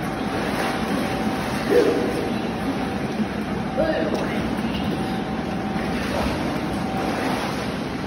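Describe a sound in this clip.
Water splashes as a boy swims and paddles in an echoing indoor pool.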